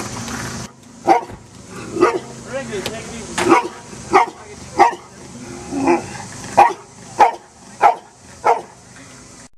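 A dog barks loudly and repeatedly.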